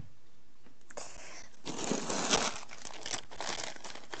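Fabric rustles as bedding is handled.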